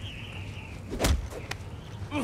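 A heavy punch lands with a thud.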